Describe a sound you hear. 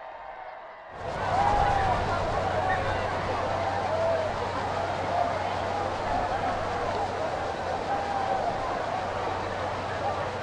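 A crowd murmurs and cheers in an open-air stadium.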